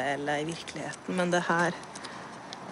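A young woman speaks hesitantly, close by.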